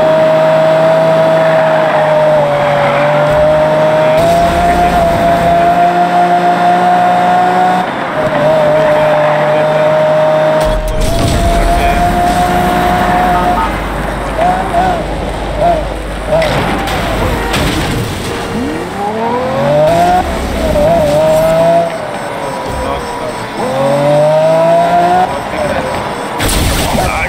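A sports car engine roars at high speed, its pitch rising and falling with gear changes.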